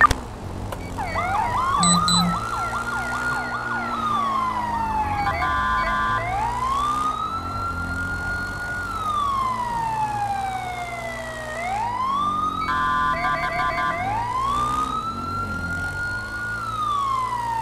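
A police siren wails, rising and falling over and over.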